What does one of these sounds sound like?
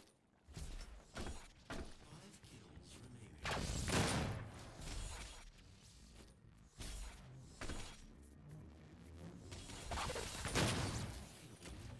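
Heavy guns fire in short, sharp bursts.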